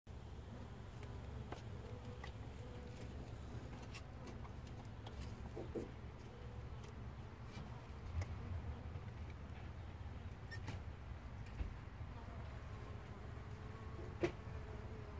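Bees buzz faintly around a hive entrance.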